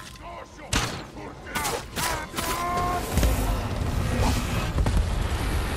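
Swords clash and ring sharply in a fierce fight.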